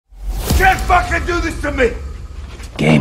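A man shouts in anguish.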